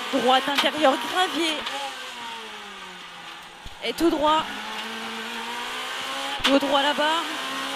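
A rally car engine roars, its pitch rising and falling with gear changes.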